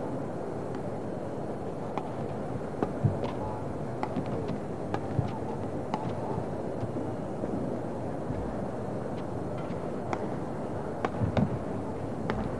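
Rackets strike a shuttlecock in a quick rally.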